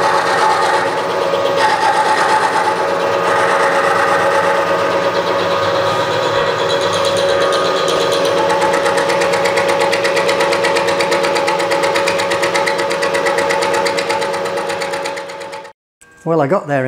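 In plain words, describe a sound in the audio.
A milling machine whirs steadily as its cutter grinds through metal.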